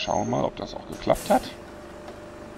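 Bus doors open with a sharp hiss of air.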